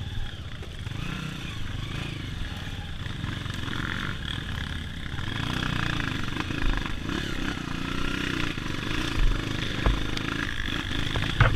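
Branches and leaves brush against the dirt bike.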